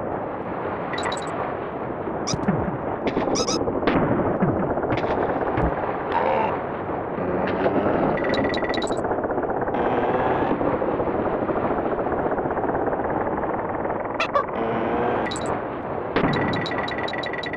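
Short chiming pickup blips ring out now and then.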